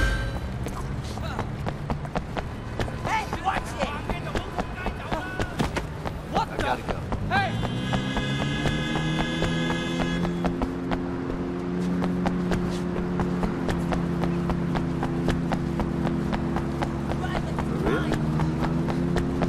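Footsteps run quickly along a hard street.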